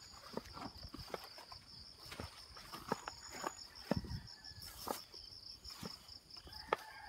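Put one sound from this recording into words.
Footsteps crunch through dry leaves and undergrowth.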